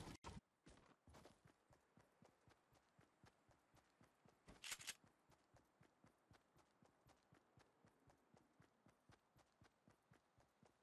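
Footsteps patter quickly and evenly across grass.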